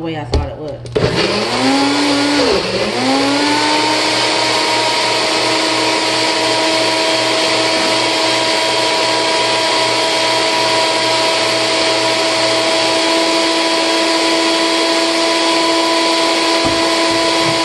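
A blender motor whirs loudly, speeding up and then running at a steady high whine.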